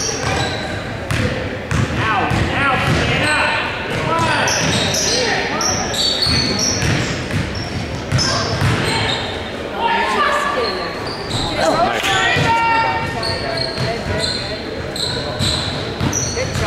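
Young women players shout to each other across an echoing court.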